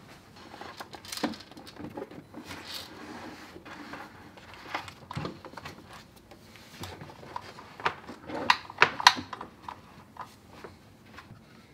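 A wooden cabinet door creaks and bumps as a grinder is slid inside.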